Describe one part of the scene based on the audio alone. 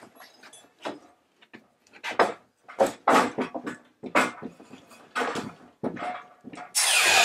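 Wooden boards knock and clatter.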